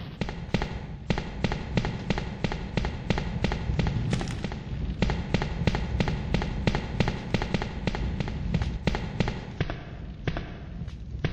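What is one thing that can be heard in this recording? Footsteps clatter down metal stairs.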